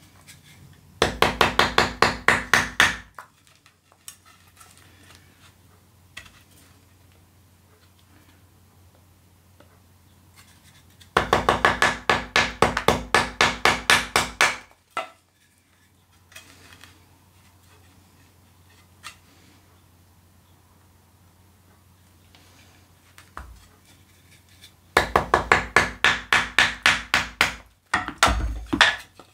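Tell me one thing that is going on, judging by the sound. A hand saw cuts through wood in quick, rasping strokes.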